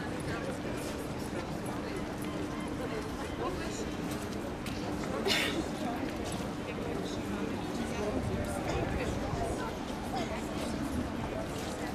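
People chatter faintly in the distance, outdoors.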